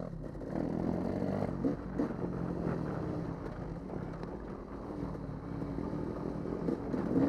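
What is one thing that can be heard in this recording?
A dirt bike engine roars up close, revving and shifting in pitch.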